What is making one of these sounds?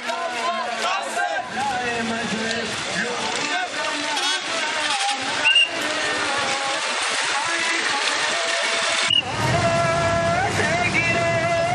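A large crowd of men chants together outdoors.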